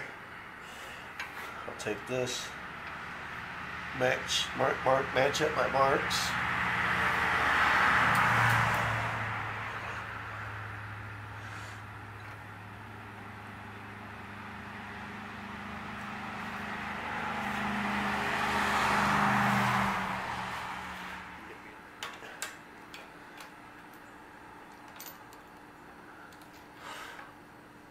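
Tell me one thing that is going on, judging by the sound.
Metal parts click and clink as they are handled and fitted on an engine.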